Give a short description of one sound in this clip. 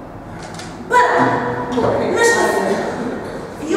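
A group of young women sing together.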